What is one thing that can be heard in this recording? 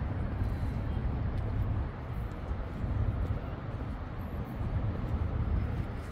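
A runner's footsteps patter on paving.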